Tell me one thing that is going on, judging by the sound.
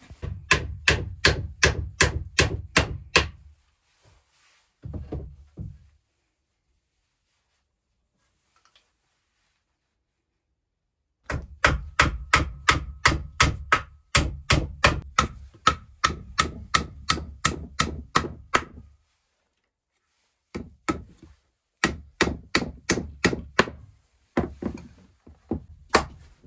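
A hammer taps rapidly on wood, in quick bursts with pauses.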